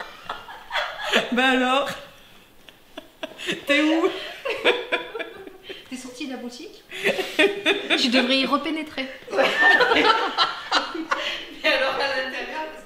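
A woman laughs loudly with delight.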